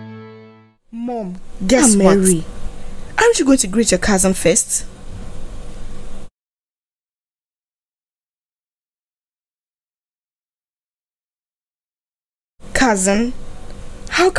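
A young woman speaks with animation.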